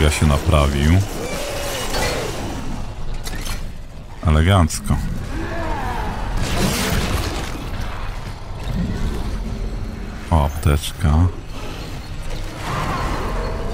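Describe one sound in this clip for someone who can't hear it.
A monster shrieks and snarls close by.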